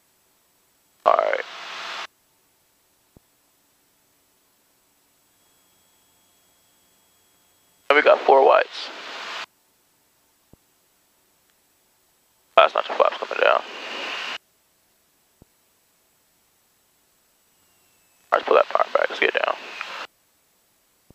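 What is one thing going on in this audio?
A young man speaks calmly over a radio headset in short bursts.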